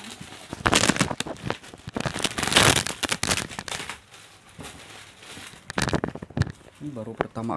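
Styrofoam packing squeaks and rustles as it is pulled from a box.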